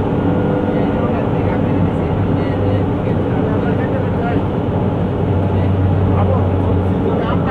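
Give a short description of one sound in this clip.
A vehicle's engine hums steadily while driving along a road.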